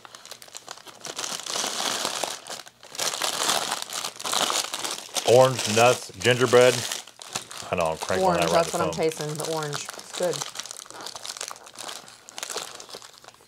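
Plastic wrapping crinkles as it is unwrapped.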